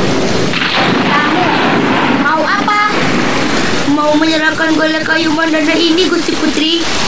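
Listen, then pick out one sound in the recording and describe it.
A young girl speaks with emotion.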